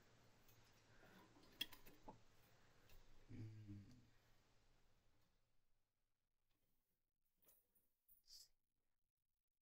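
A wire cage rattles and clinks.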